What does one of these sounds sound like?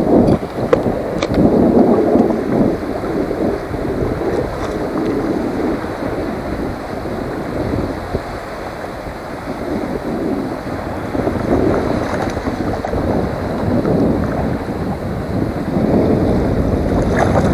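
Wind blows steadily across the open water.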